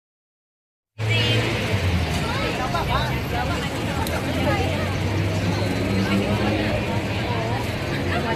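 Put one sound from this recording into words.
A crowd of young people chatters and cheers loudly nearby.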